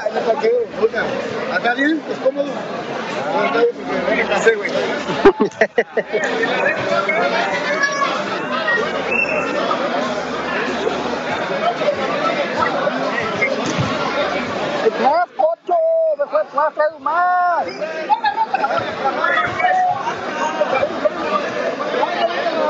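A crowd of men chatters and shouts in a large echoing hall.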